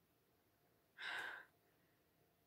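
A young woman sniffs deeply.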